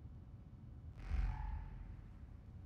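A soft electronic chime rings out.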